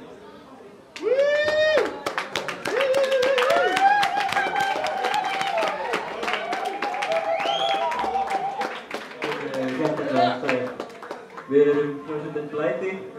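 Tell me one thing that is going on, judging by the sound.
A saxophone plays a lively, wailing melody loudly.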